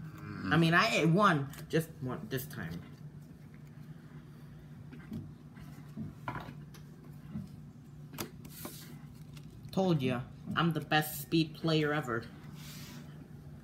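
Playing cards slide and tap on a wooden table.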